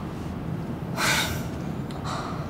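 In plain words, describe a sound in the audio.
A young woman gasps sharply.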